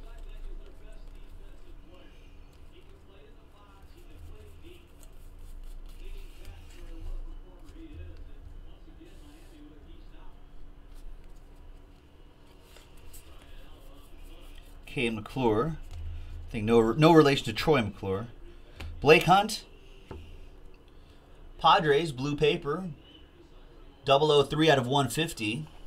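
Trading cards shuffle and flick softly between fingers.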